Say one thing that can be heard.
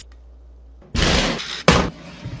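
An oven knob clicks as it turns.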